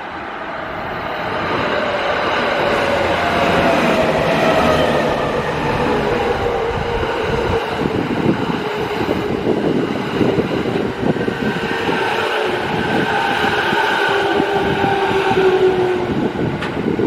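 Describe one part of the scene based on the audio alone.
A train's motor whines, slowly falling in pitch.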